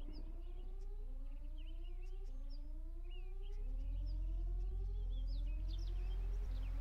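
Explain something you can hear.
A hover engine whines, its pitch rising over and over in a steady cycle.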